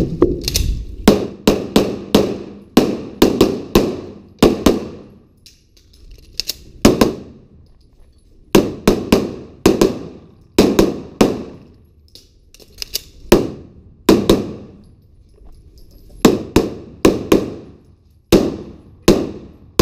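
A pistol fires shot after shot in quick bursts, echoing loudly in a large hall.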